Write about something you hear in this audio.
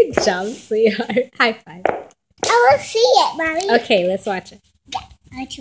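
A young girl talks and giggles cheerfully, close by.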